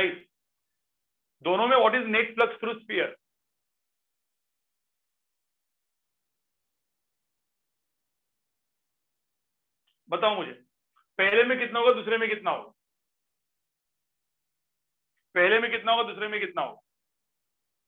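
A man speaks calmly into a microphone, in short bursts with long pauses.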